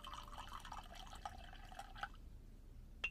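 Water pours into a glass, rising in pitch as it fills.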